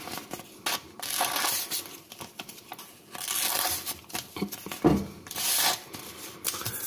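A metal tool scrapes in short, rasping strokes.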